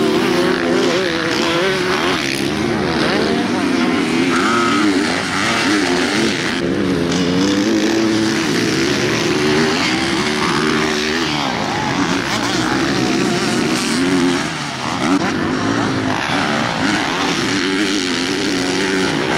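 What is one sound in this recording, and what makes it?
A dirt bike engine revs loudly and roars.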